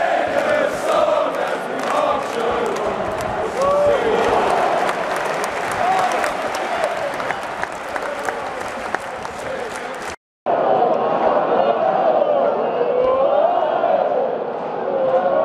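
A large stadium crowd sings and chants loudly, echoing in the open air.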